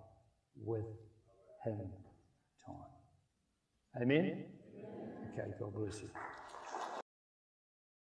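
A middle-aged man speaks with animation through a microphone in a large hall.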